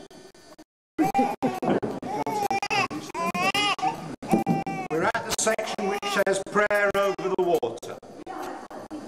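A baby cries loudly and wails.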